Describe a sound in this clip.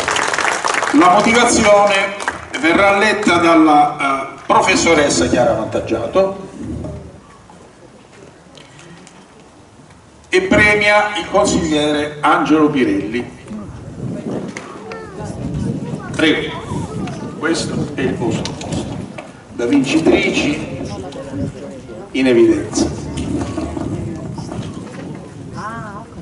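A man speaks with animation through a microphone and loudspeakers.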